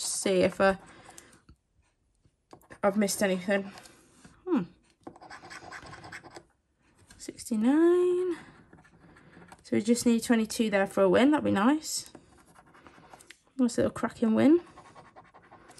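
A coin scratches across a card.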